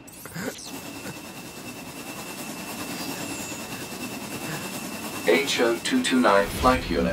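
A flying machine's jet engines roar steadily and grow louder.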